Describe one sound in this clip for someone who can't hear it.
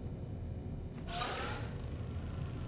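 A gun is raised to aim with a quick whooshing swish.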